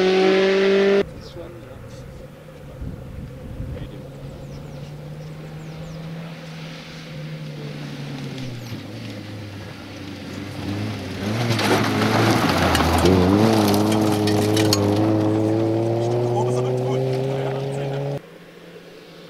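A rally car engine revs hard and shifts gears as the car races past.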